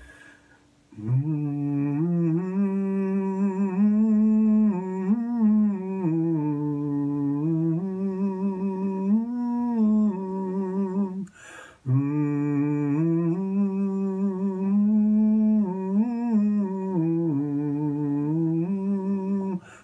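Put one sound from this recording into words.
An older man sings close to a microphone in a low, steady voice.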